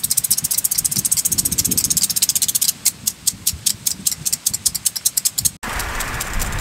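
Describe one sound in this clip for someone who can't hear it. A lawn sprinkler ticks rapidly as it turns.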